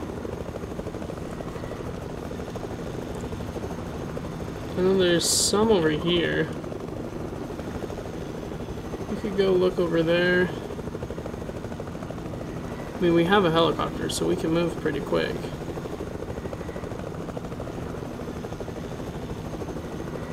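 A helicopter's rotor whirs steadily.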